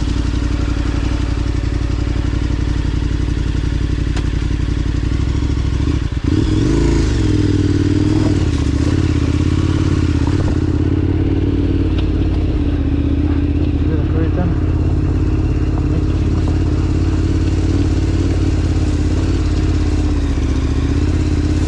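Tyres crunch over loose gravel and rocks.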